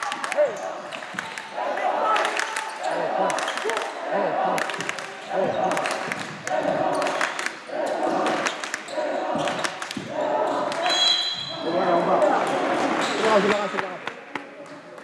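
A crowd of young spectators chants rhythmically.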